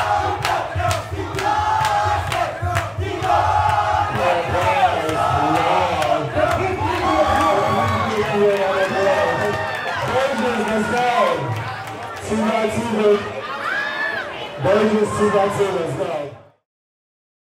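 A man talks loudly with animation into a microphone over a loudspeaker in a large echoing hall.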